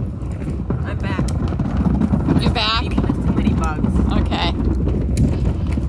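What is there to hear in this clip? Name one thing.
Plastic wheels of a trash bin rumble over paving stones.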